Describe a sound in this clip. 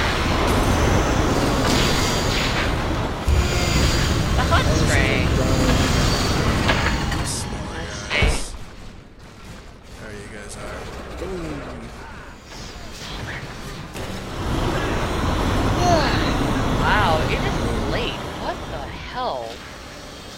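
Fire bursts with a roar in a game battle.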